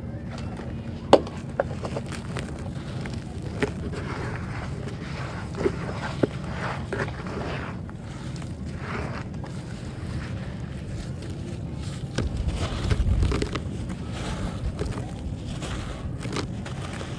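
Dry soil crumbles and rustles under hands.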